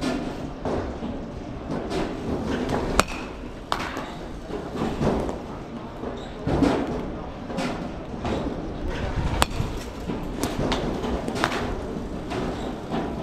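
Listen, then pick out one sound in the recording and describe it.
Go-kart engines buzz and whine as the karts race past nearby.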